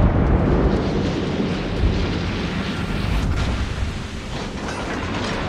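Shells explode with deep rumbling blasts.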